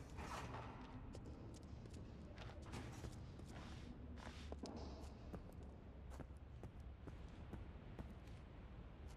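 Footsteps scuff slowly on a gritty concrete floor.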